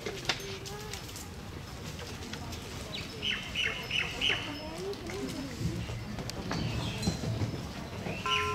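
Men and women chat quietly nearby, outdoors.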